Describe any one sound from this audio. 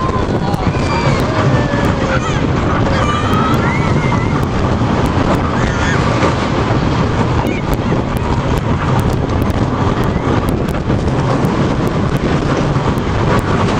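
A roller coaster rattles and roars loudly along its track.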